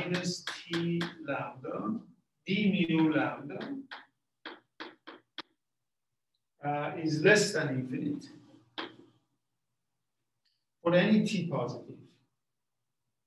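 An older man lectures calmly, close by and in bursts with pauses.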